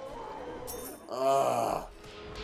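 A bright chiming fanfare rings out.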